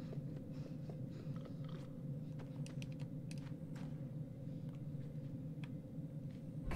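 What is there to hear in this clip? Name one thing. Small footsteps patter softly on wooden boards.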